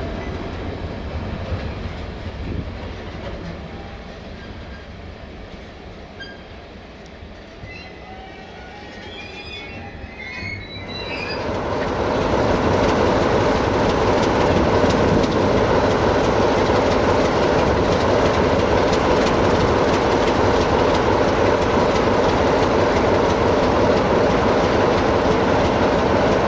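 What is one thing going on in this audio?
A long freight train rumbles and clatters past on the rails.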